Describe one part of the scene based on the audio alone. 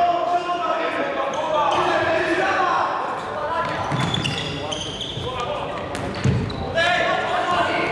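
A ball thumps on a hard floor in a large echoing hall.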